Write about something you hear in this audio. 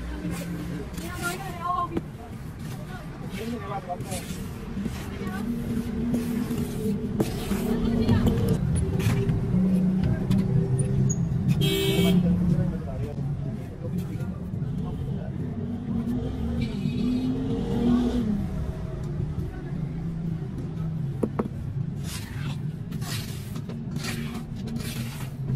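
A wooden board scrapes across wet concrete.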